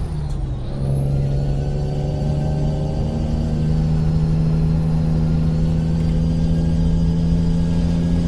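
A truck engine drones steadily and rises slightly in pitch as it speeds up.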